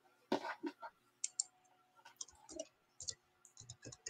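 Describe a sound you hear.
Cloth rustles softly as it is moved by hand.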